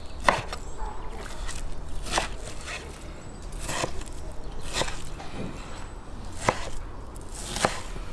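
A knife chops raw meat on a wooden cutting board.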